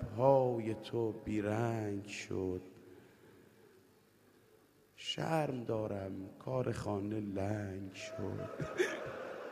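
A man chants with emotion into a microphone, in a large echoing hall.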